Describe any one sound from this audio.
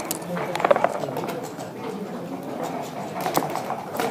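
Game pieces click against a wooden board.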